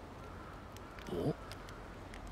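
A young man gives a short questioning grunt.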